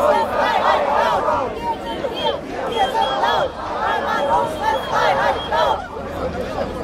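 A large crowd chants loudly in unison outdoors.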